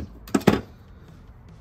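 Metal pliers click as their jaws open and close.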